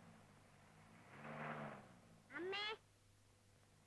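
A young boy speaks up close.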